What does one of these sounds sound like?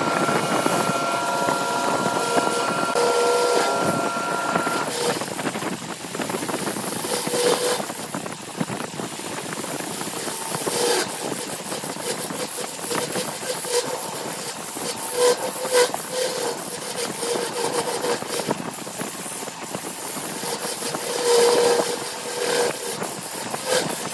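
A wood lathe motor hums as it spins.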